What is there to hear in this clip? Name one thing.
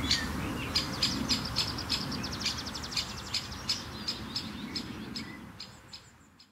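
A woodpecker taps rapidly on wood.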